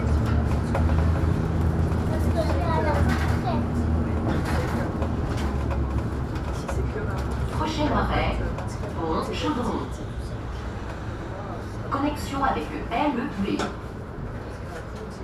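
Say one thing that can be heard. A bus engine hums steadily from inside and quietens as the bus slows to a stop.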